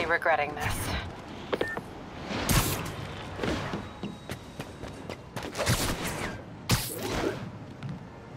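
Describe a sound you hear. Swift whooshes cut through the air.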